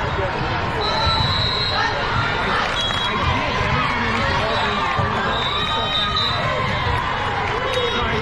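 Sneakers squeak on a hard court floor.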